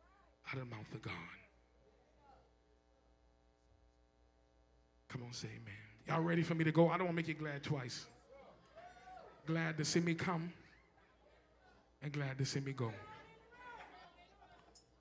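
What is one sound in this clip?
A man preaches loudly and with fervour through a microphone in a large echoing hall.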